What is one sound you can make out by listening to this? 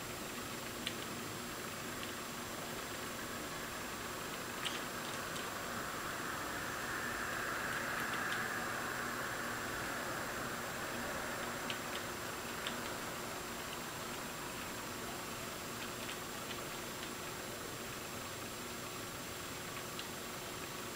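Fingers tap keys on a keyboard now and then.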